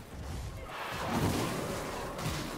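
Fire bursts with a loud whoosh.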